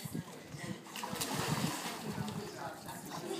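A boy dives into water with a splash.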